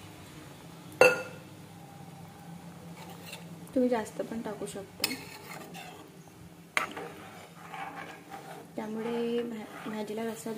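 A metal spoon clinks and scrapes against a steel pan.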